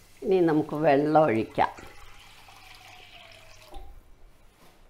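Water pours into a hot pan and sizzles.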